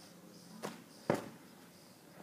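A heavy ball drops onto the ground with a dull thump.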